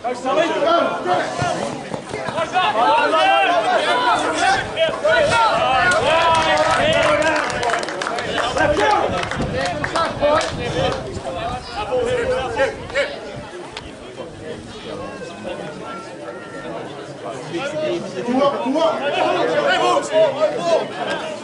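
Players shout to each other across the field.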